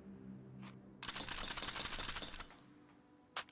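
Loose cartridges rattle against each other.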